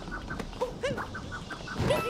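A game character jumps with springy sound effects.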